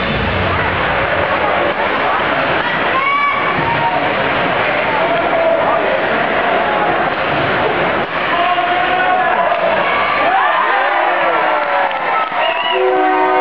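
A crowd of spectators chatters and cheers in a large echoing rink.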